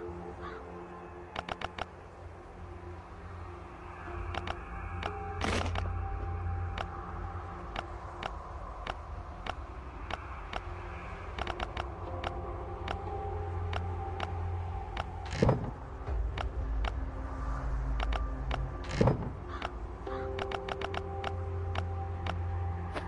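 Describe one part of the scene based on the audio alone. Short soft clicks sound as items are moved between slots.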